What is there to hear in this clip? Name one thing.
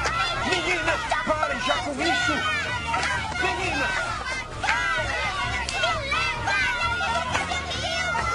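Young children shout and scream excitedly.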